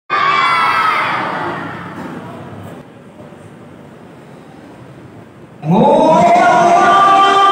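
A young man chants melodiously into a microphone, heard through loudspeakers with echo.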